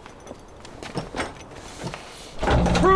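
A metal door knocker bangs against a wooden door.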